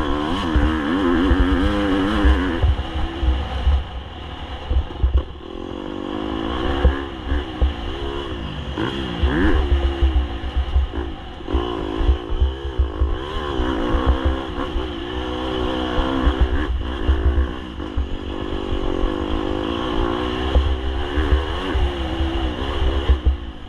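A dirt bike engine revs up and down as the bike rides.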